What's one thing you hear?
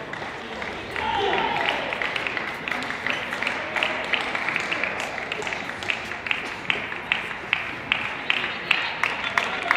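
Young women talk with each other in a large echoing hall.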